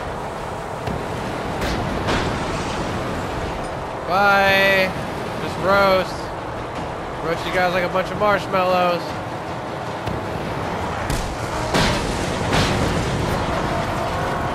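Flames blast from a game vehicle's exhausts.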